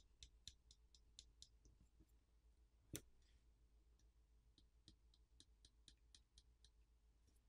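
Small plastic parts click softly as a phone is pried apart.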